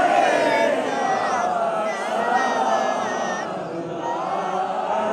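A man sings out a melodic recitation.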